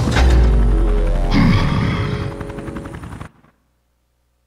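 Loud game sound effects and music play, then cut off into silence.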